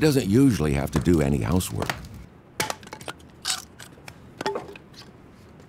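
A hatchet chops wood with sharp knocks.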